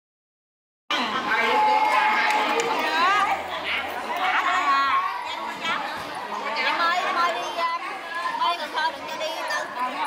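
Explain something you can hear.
A crowd of men, women and children chatter loudly all around in a busy echoing room.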